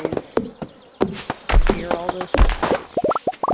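An axe chops into a tree with sharp thuds.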